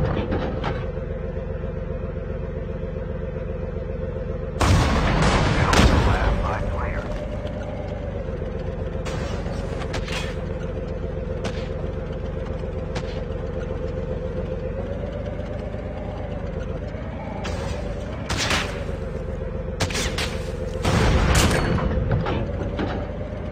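A heavy tank engine drones and rumbles steadily.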